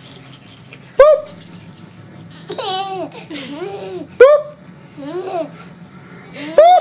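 A baby lets out high-pitched squeals close by.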